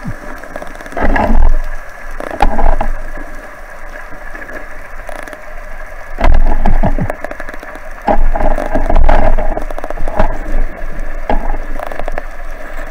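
Bubbles burst and gurgle from a diver's regulator underwater.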